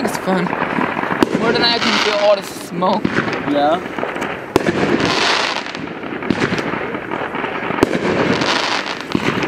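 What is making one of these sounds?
Fireworks pop and crackle overhead.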